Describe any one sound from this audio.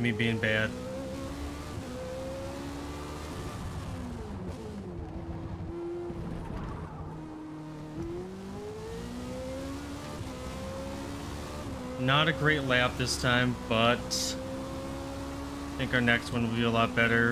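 A race car engine roars, dropping in pitch as it slows for a bend and rising again as it speeds up.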